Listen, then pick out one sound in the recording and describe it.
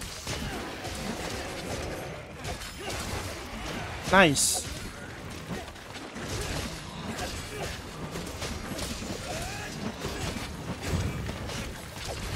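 Game weapons clash and strike in quick bursts.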